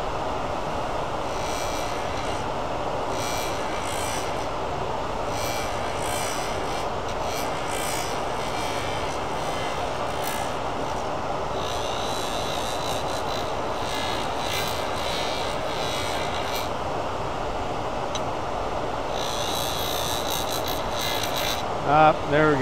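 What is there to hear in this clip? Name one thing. A metal tool scrapes and hisses against a spinning rod.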